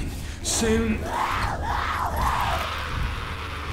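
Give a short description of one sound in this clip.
A woman snarls and shrieks.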